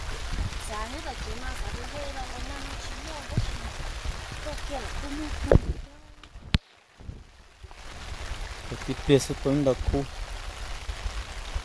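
Shallow water splashes softly as someone wades.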